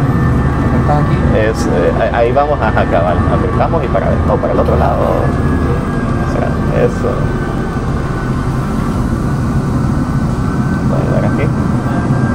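A man speaks nearby with animation.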